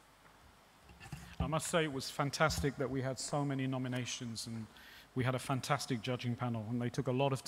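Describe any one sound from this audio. A man speaks calmly into a microphone, heard over loudspeakers in a large hall.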